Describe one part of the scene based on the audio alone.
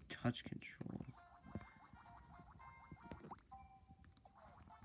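Cheerful video game music plays with bright chiming notes.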